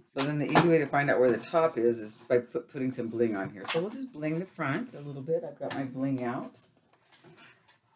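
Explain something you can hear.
A small paper box rustles and taps against a board.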